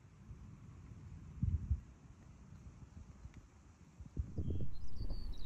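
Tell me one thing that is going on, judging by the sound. Wind gusts and rumbles outdoors in low bursts.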